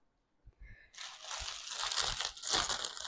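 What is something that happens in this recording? A plastic wrapper rustles and crinkles.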